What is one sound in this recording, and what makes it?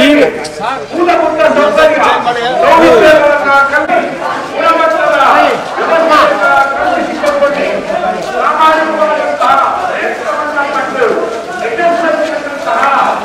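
A crowd of men chants slogans loudly outdoors.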